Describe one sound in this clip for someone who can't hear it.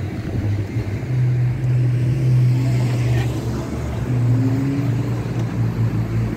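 A car drives past close by with a low engine hum.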